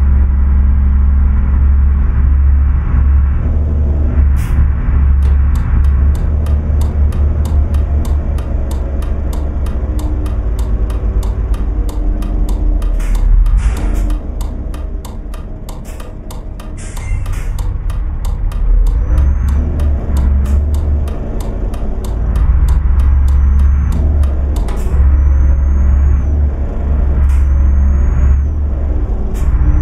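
A turn signal ticks rapidly in a truck cab.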